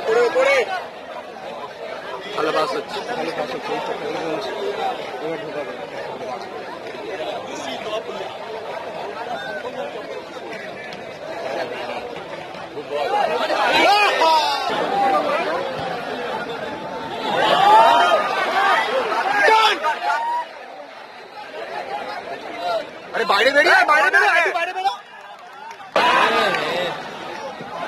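A large stadium crowd murmurs and chatters all around.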